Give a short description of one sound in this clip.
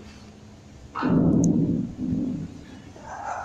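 A man clears his throat close to a microphone.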